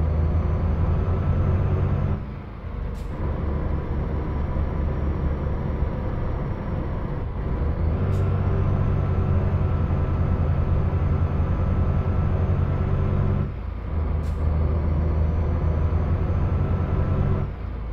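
A truck engine rumbles steadily, dropping briefly as gears change.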